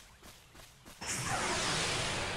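A loud rushing whoosh sweeps in.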